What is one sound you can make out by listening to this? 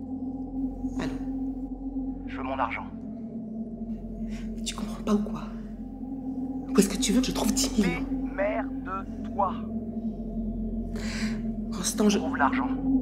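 A woman talks quietly on a phone.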